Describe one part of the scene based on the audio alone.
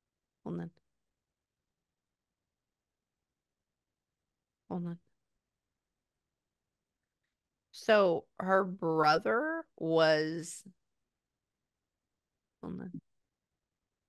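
A woman speaks softly and slowly into a close microphone.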